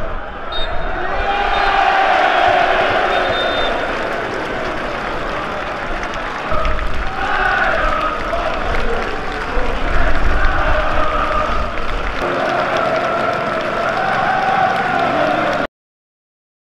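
A large crowd of fans chants and cheers in an open stadium.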